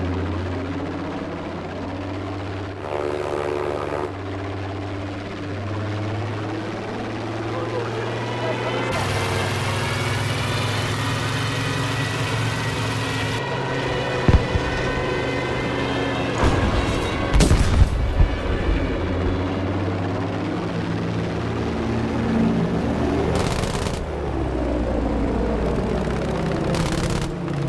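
A propeller plane's engine drones steadily, rising and falling in pitch.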